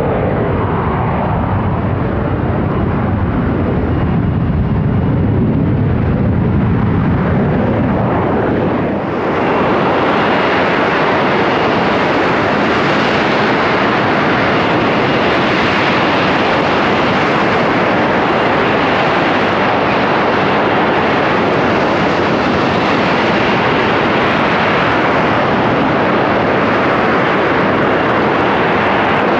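A jet engine roars loudly and steadily as a jump jet hovers close by.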